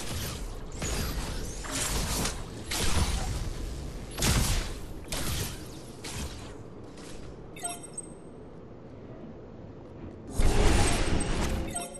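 Magical energy blasts whoosh and crackle in quick bursts.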